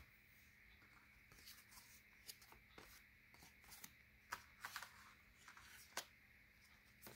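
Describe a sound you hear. Cards slide and tap against each other close by.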